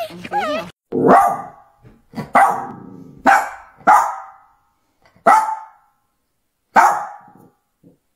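A small dog yips in short bursts.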